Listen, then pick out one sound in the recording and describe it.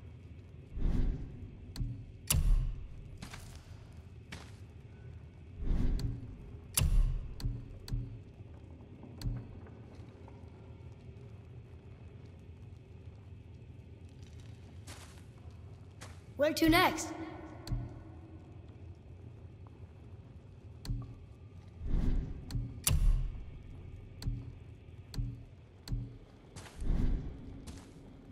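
Soft clicks and whooshes sound as menu items are selected.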